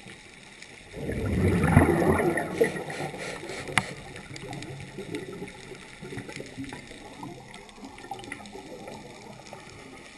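Air bubbles rush and gurgle underwater, loud at first and then quieter.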